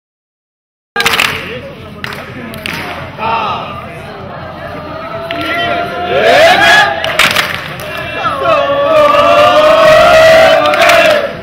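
Young men shout and debate loudly outdoors.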